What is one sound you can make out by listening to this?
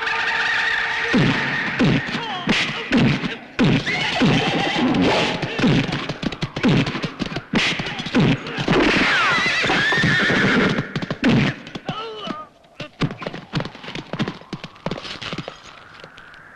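Heavy punches thud in a fistfight.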